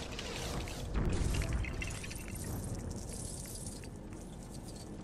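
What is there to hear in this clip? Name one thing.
Coins scatter and jingle as an object breaks apart.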